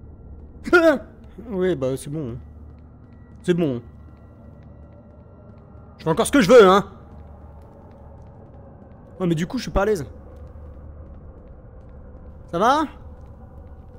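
A young man speaks in short excited bursts, close to a microphone.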